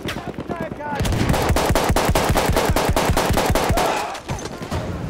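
A machine gun fires rapid bursts indoors.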